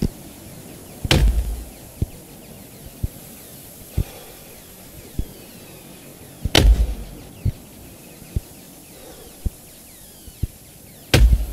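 An axe chops into a tree trunk with heavy thuds.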